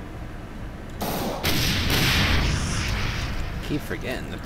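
A pistol fires several shots in quick succession.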